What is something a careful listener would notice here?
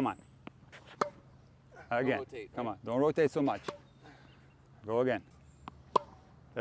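A tennis racket hits a ball with a sharp pop.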